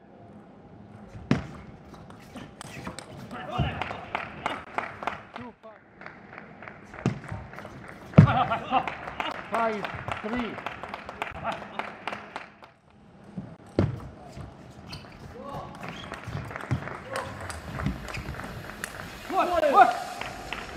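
A table tennis ball clicks back and forth off paddles and the table in quick rallies.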